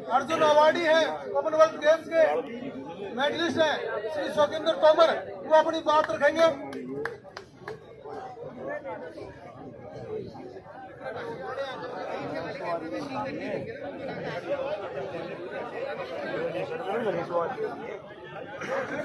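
A crowd murmurs and talks around.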